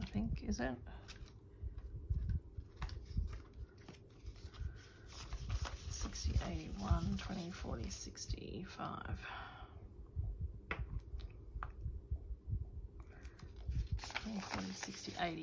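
Plastic sleeves rustle and crinkle as they are handled.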